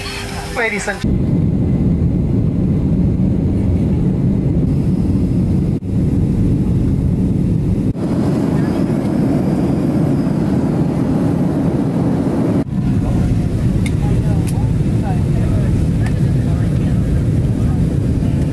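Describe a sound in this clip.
Jet engines roar steadily inside an aircraft cabin.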